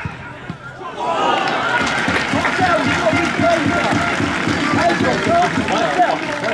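A crowd of spectators cheers and chatters loudly.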